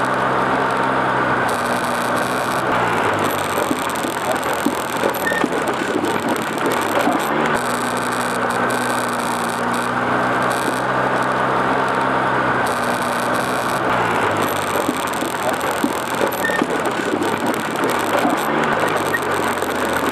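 An off-road quad engine hums steadily, its pitch dropping and rising as it shifts.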